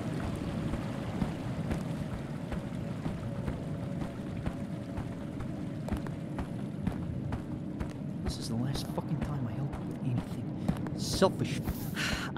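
Footsteps crunch steadily on a forest floor.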